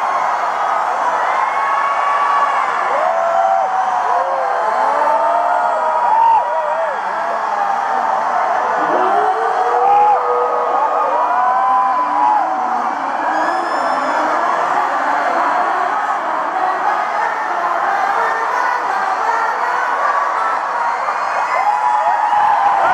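A large crowd sings along loudly.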